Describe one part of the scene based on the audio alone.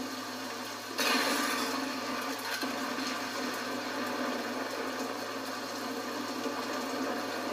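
Gunshots fire from a video game.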